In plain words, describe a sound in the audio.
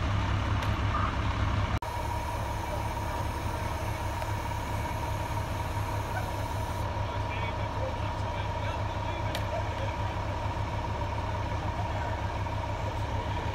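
A fire engine's diesel engine idles with a steady low rumble nearby.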